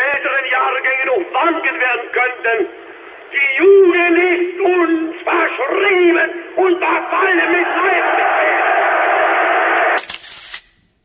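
A man makes a forceful speech, heard through an old, crackly recording.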